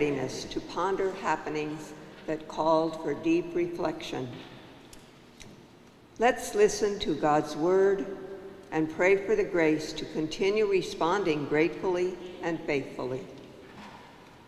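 An elderly woman speaks calmly into a microphone in a large echoing room.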